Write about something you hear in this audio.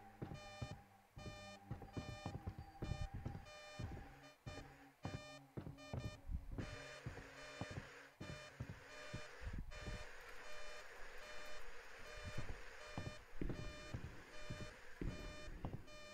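An electronic device beeps in a fast, steady rhythm.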